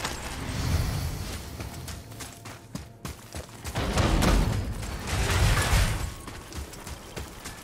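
Heavy footsteps run across dusty ground.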